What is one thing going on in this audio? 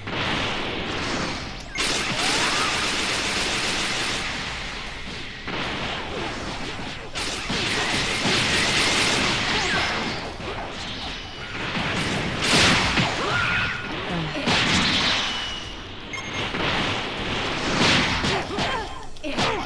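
Heavy punches land with sharp thuds.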